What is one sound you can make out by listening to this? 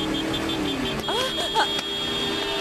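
A woman cries out in alarm.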